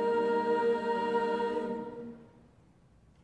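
A choir holds a final sung chord in a large hall.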